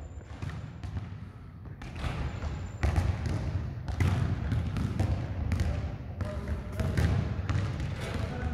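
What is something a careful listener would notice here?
Footsteps thud and sneakers squeak on a hard floor in a large echoing hall.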